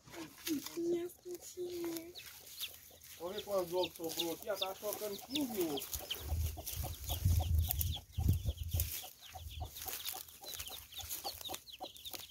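Chicks peep in high, quick chirps.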